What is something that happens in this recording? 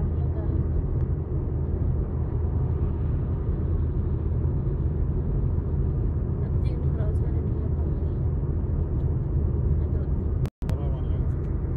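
A car's engine and tyres rumble steadily on the road, heard from inside the car.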